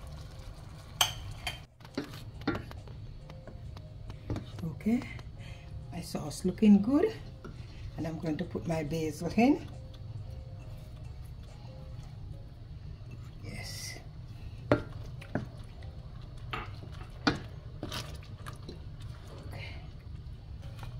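A wooden spoon stirs thick sauce and knocks against a metal pan.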